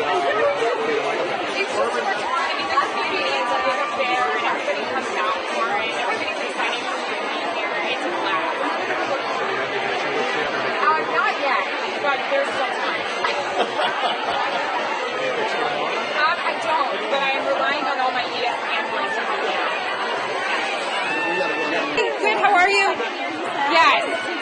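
A crowd chatters all around.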